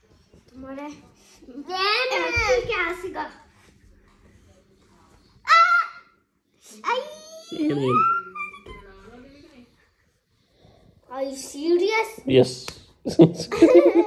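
A young girl talks animatedly close by.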